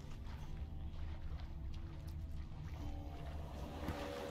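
Water sloshes and splashes as someone swims.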